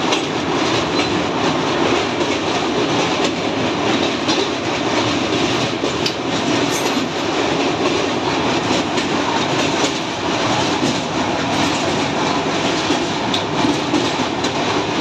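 A train rumbles loudly and steadily over a metal bridge.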